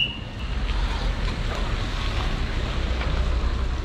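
Tyres hiss on the wet road.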